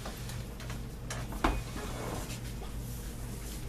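A chair scrapes and knocks as a man stands up.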